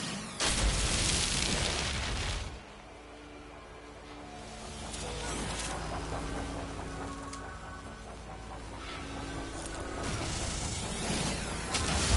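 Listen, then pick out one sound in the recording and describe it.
A mining beam hisses as it cuts into plants.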